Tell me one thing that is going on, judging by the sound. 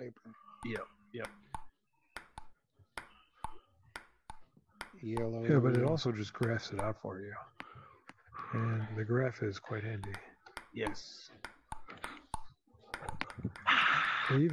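A ping-pong ball clicks back and forth off paddles and a table in a quick rhythm.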